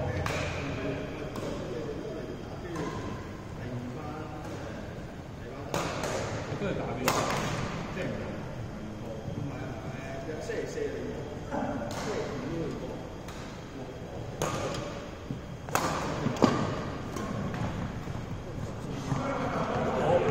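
Young men talk and call out in the echoing hall.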